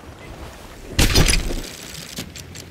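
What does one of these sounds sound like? A cannon fires with a loud, deep boom.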